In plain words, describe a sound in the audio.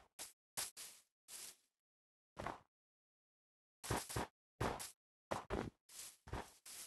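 Footsteps crunch on snow in short bursts.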